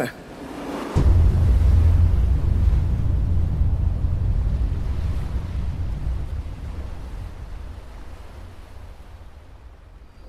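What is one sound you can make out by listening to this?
Stormy waves crash and churn on the open sea.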